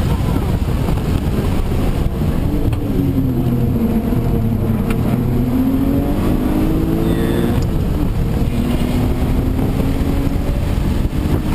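A car engine roars loudly from inside the cabin, rising and falling in pitch.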